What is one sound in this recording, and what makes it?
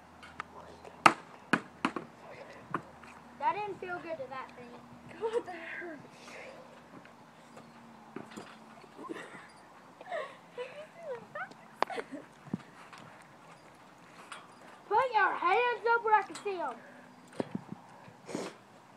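A trampoline mat creaks and thumps as a girl bounces on it.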